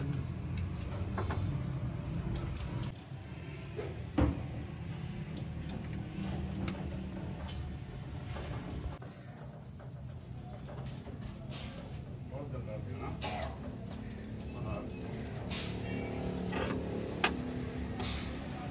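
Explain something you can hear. Metal tools clink and knock against car parts close by.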